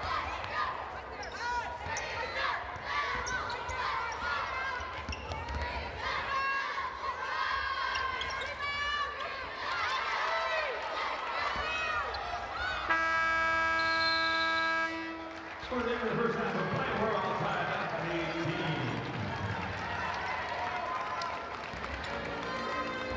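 A crowd of spectators murmurs and cheers in a large echoing gym.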